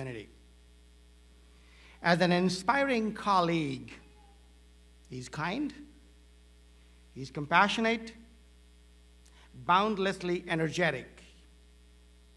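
A middle-aged man speaks slowly and deliberately through a microphone, with pauses between phrases, in a large hall.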